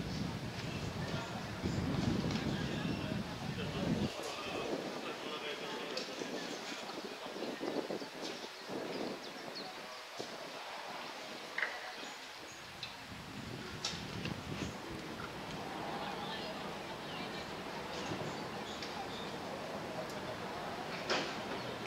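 Men call out to each other across a field, distant.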